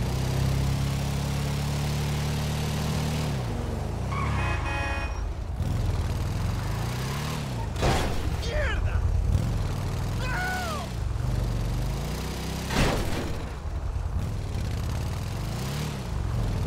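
A motorcycle engine rumbles and revs up and down.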